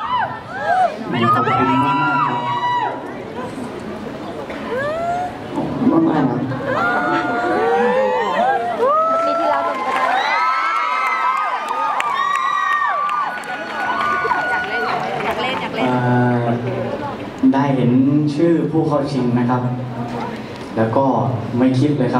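A young man speaks through a microphone over loudspeakers in a large hall.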